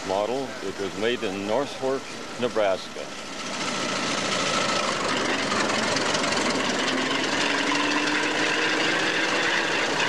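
An old tractor engine chugs and grows louder as the tractor drives off.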